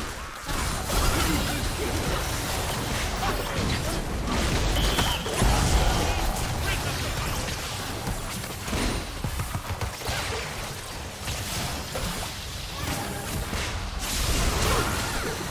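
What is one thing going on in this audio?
Game spell effects whoosh and burst during a fight.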